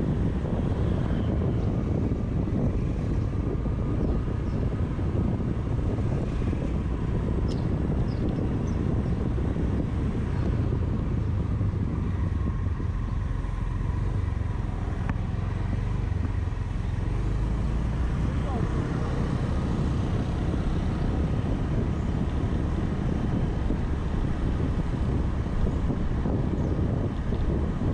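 Wind rushes past, strong and low.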